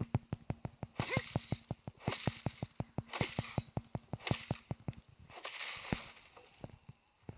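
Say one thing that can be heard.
An axe chops into a tree trunk with heavy thuds.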